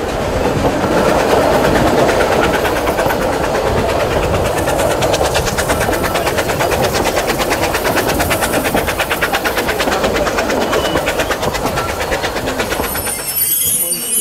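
Train wheels clatter in a fast, even rhythm on the rails.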